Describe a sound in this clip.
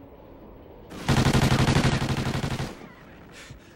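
Rapid gunfire rattles loudly in a game.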